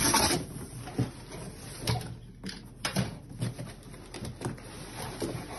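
Packing pieces knock and thump as they are pulled out.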